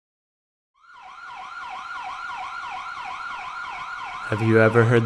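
A police siren wails rapidly up and down.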